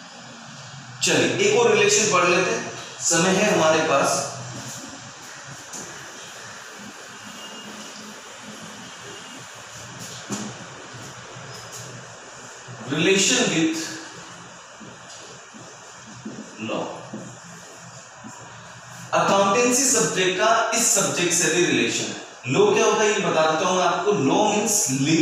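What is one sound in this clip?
A man speaks calmly and clearly close by, as if teaching.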